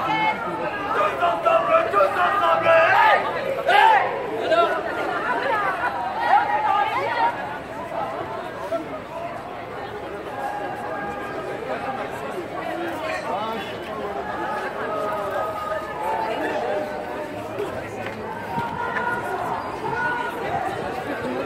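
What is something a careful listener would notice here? A crowd of men and women chatter and call out nearby outdoors.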